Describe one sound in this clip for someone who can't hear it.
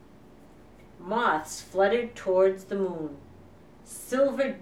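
A woman reads aloud in a gentle, expressive voice close by.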